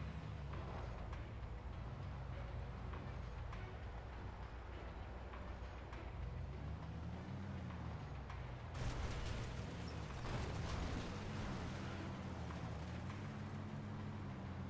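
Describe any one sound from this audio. A heavy vehicle's engine rumbles and revs as it drives.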